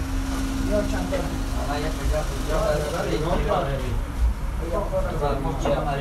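Dishes clink as a plate is set on a table.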